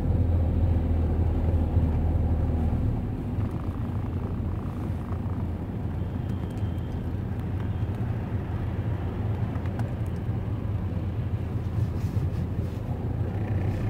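Traffic rumbles by on a city street.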